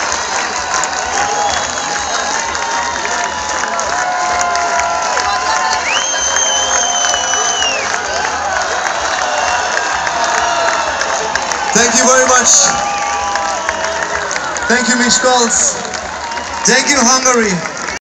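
A large crowd cheers and screams loudly.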